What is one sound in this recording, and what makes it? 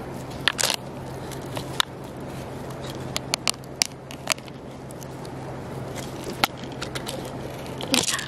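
Footsteps crunch on dry grass and twigs.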